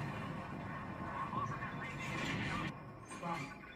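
An explosion rumbles through a television speaker.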